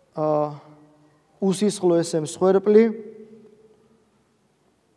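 A man chants a prayer in a steady, sung voice, echoing in a reverberant hall.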